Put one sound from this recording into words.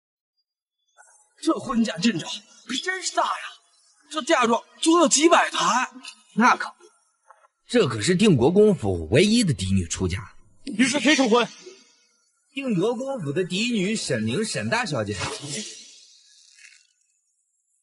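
A young man speaks calmly and closely.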